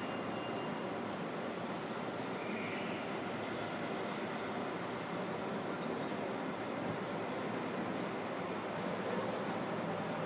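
Buses drive along a street below.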